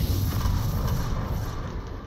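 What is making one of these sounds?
Gunfire rattles in rapid bursts overhead.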